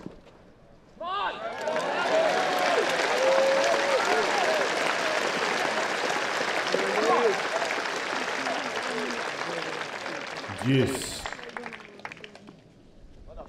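A large outdoor crowd cheers and applauds loudly, then fades.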